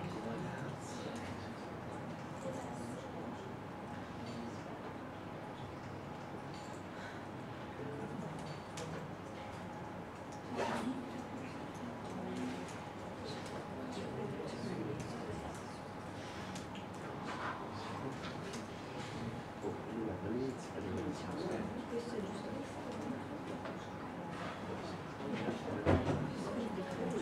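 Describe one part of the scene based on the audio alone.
A man speaks quietly at a distance.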